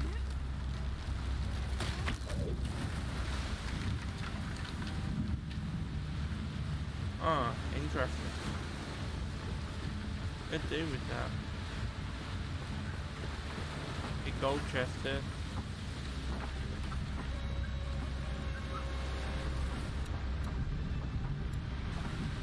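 Heavy rain and wind roar steadily outdoors in a storm.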